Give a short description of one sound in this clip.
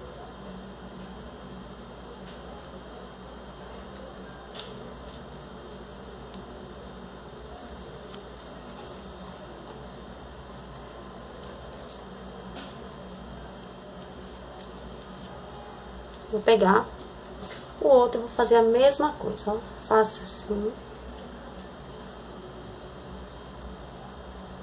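Fabric ribbon rustles softly as hands fold it.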